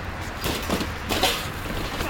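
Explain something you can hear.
A plastic bin knocks against a car boot.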